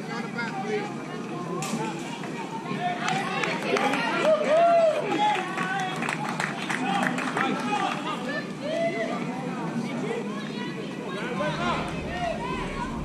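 Young children shout and cheer outdoors at a distance.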